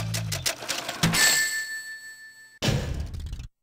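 A video game chime rings out.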